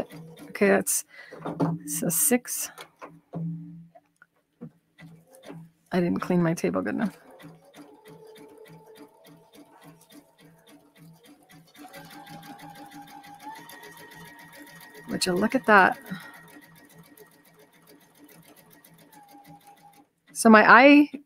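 A sewing machine whirs and stitches with a fast, steady rhythm.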